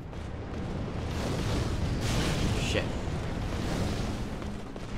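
Flames roar and crackle in a burst of fire.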